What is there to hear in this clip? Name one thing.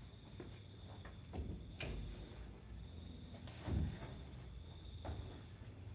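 Footsteps thump on a hollow metal floor as a person climbs into a vehicle.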